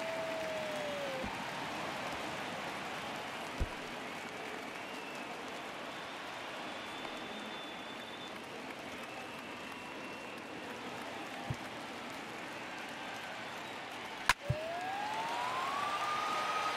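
A large stadium crowd murmurs and cheers throughout.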